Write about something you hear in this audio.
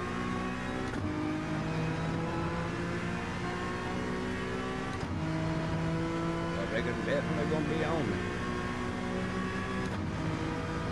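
A racing car's gearbox shifts up with a short break in the engine's roar.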